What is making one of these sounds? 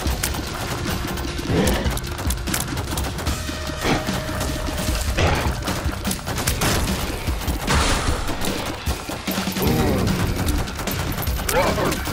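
Small shots patter and splat in quick succession.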